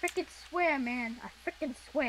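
A pickaxe chips at stone blocks.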